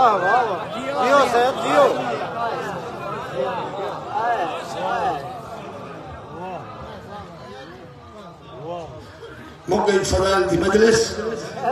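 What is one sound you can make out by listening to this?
A man chants melodically into a microphone, heard through loudspeakers.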